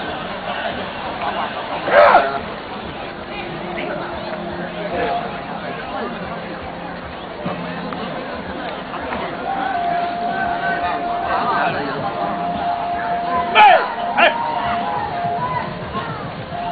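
A large outdoor crowd murmurs and chatters.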